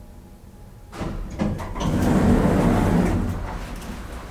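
Elevator doors slide open with a rumbling whoosh.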